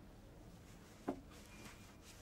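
Glass clinks sharply against glass.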